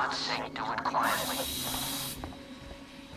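Steam hisses in a sudden burst.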